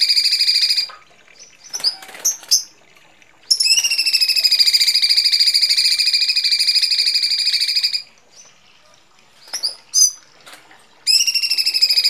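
Small birds call in short, sharp chirps between the bursts.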